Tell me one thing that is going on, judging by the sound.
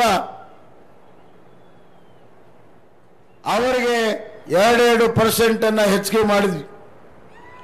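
A man speaks forcefully into a microphone over loudspeakers, outdoors.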